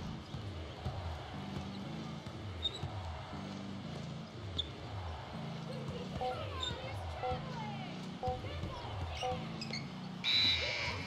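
A basketball bounces rhythmically on a hardwood floor.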